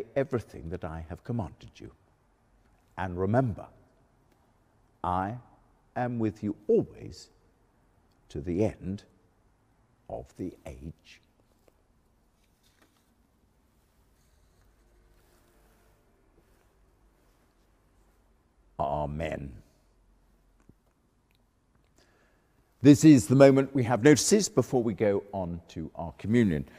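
An elderly man reads aloud calmly into a microphone, with pauses between phrases.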